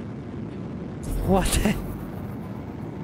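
An energy shield bursts with a loud whoosh.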